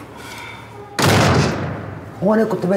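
A door rattles as it is pulled.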